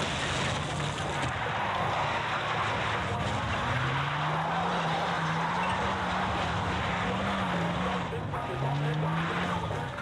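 A vehicle engine revs and drones steadily.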